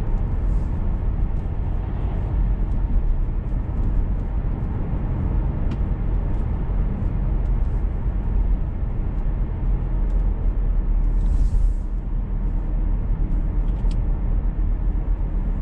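Tyres rumble on the road.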